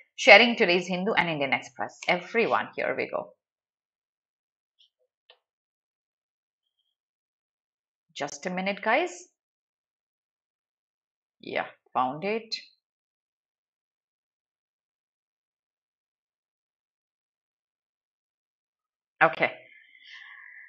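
A young woman speaks calmly into a close microphone, in short bursts with pauses.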